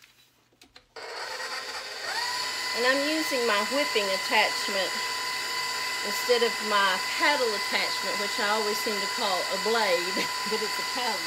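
An electric stand mixer starts up again and whirs steadily.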